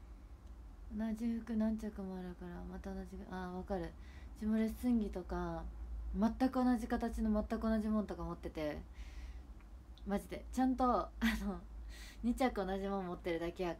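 A young woman speaks close to a microphone, in an animated voice.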